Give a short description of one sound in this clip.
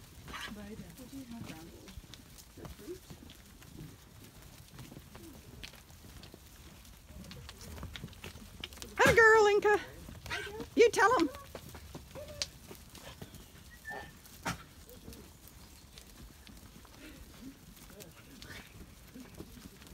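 Sheep hooves patter and squelch on a muddy path.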